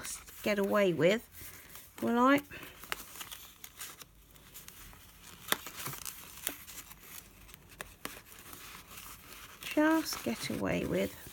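Paper rustles and crinkles as hands fold and handle it.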